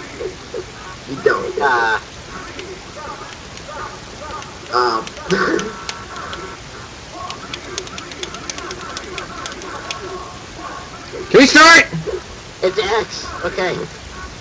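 Short electronic game menu blips sound as characters are picked.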